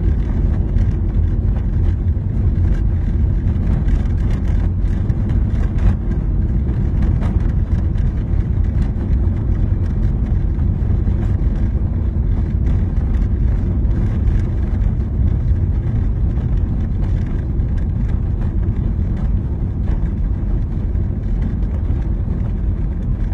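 A car engine hums steadily from inside as the car drives along.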